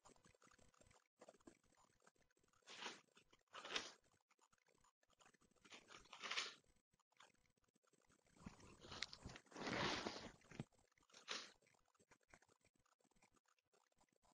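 Pages of a book rustle.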